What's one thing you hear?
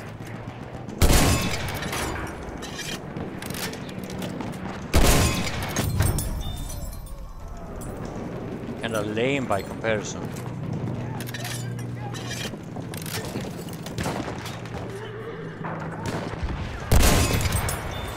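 Heavy explosions boom loudly, with rumbling echoes.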